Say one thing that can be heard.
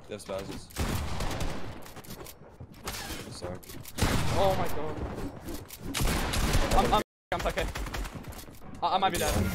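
Game sound effects thud and clatter.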